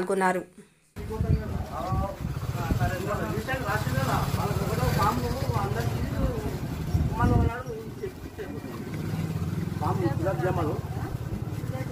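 Several men talk among themselves outdoors.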